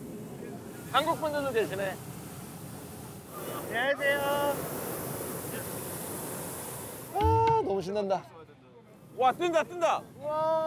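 A man talks with excitement nearby.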